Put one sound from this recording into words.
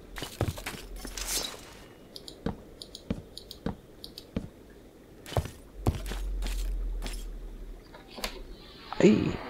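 Footsteps thud on wooden planks at a steady pace.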